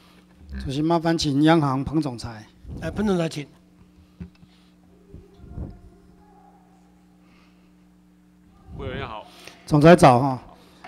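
A middle-aged man speaks firmly into a microphone, with pauses.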